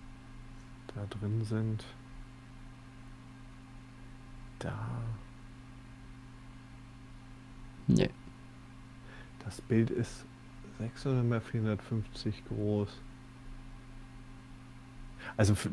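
A man talks calmly into a microphone, in short bursts.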